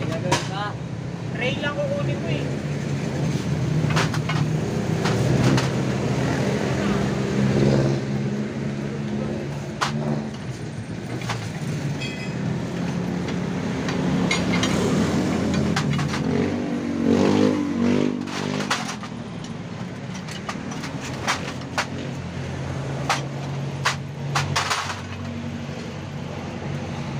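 Small parts of a scooter rattle and tick as the engine runs.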